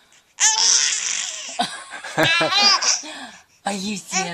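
A baby laughs loudly close by.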